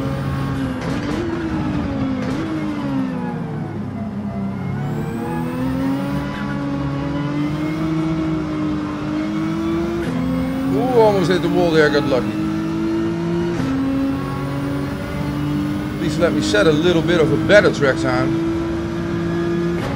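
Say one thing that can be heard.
A racing car engine whines, dropping as it slows and then climbing steadily through the gears.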